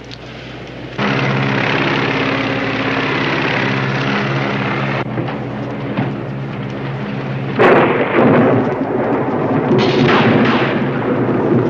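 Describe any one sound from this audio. A propeller plane's engines drone steadily.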